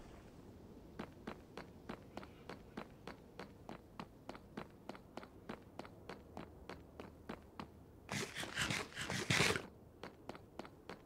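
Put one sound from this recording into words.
Footsteps tap at a steady pace on hard stone.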